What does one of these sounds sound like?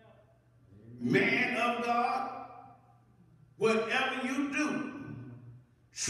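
A man preaches loudly through a microphone in a large echoing hall.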